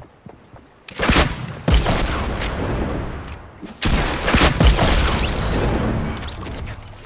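Gunfire rattles out in loud, rapid bursts.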